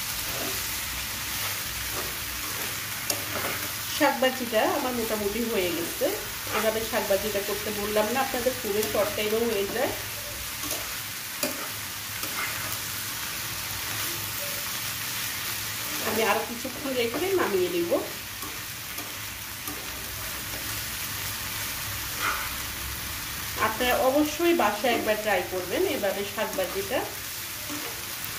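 Vegetables sizzle softly in a hot pan.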